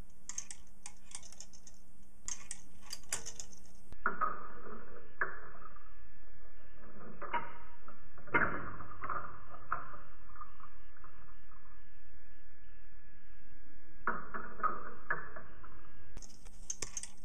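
A small electric relay clicks and buzzes rapidly.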